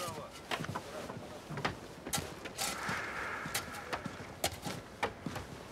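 A shovel scrapes and digs through debris.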